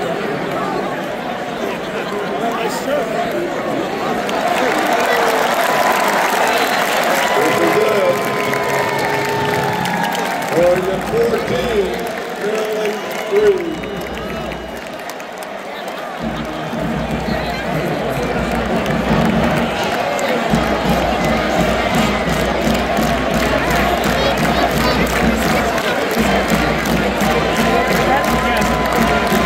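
A marching band plays brass music in the stands.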